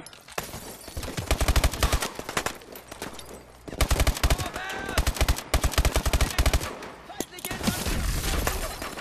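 A rifle fires rapid bursts of shots close by.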